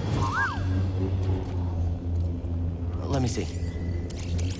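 A lightsaber swooshes through the air.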